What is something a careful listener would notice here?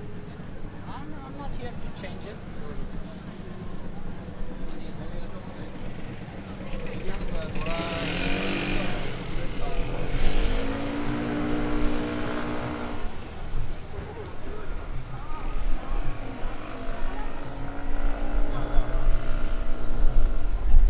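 People chatter and murmur along a busy street outdoors.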